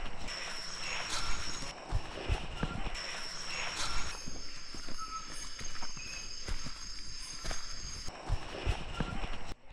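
Leaves and stems rustle as hands brush through plants.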